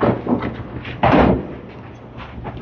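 Bowling pins crash and clatter as a ball strikes them.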